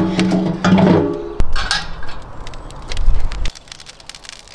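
A small iron stove door clanks open.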